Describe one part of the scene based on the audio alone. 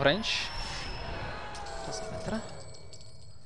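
A magical blast bursts and crackles.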